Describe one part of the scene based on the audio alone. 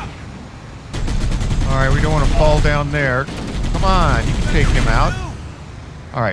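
A mounted gun fires in rapid bursts.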